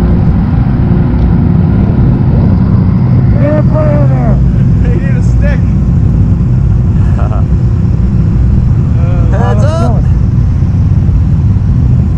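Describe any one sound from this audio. Several quad bike engines idle with a steady low rumble.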